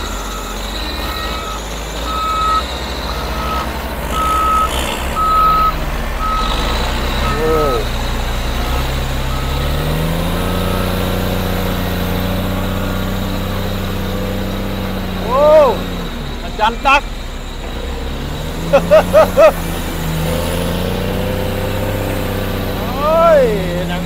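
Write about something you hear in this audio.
A heavy diesel engine rumbles steadily close by.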